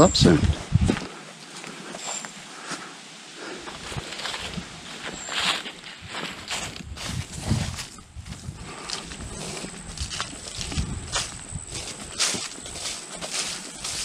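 Footsteps crunch on a dry trail.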